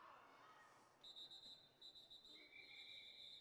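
A referee blows a whistle in short, shrill blasts.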